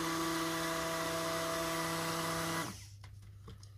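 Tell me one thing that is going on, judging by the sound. A hand blender whirs steadily, then stops.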